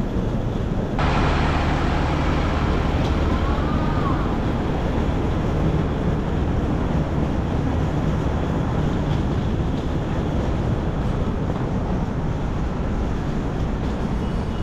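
A bus engine idles with a low rumble nearby.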